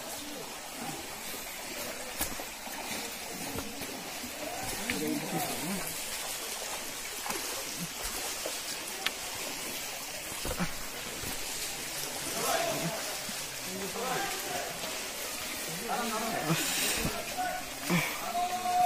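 A stream rushes over rocks nearby.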